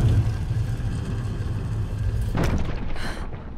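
A heavy stone wheel grinds and rumbles as it turns.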